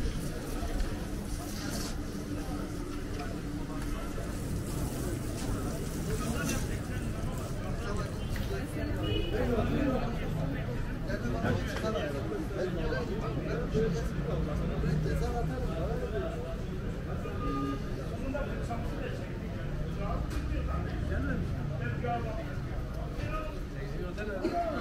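Men talk nearby in a steady murmur of voices.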